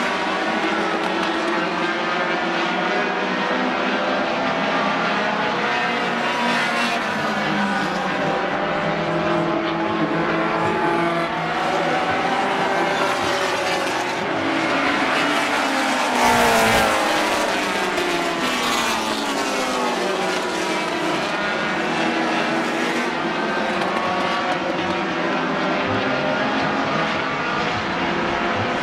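Many racing car engines roar and whine around a track.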